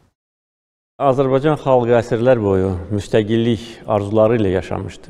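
A middle-aged man speaks calmly, close to a microphone.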